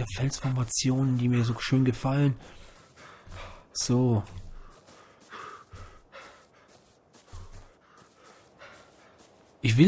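Bare feet patter across sand and grass.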